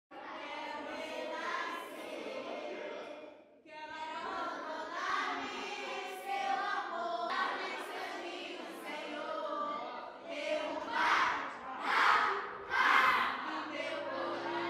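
A group of young people sing together with animation.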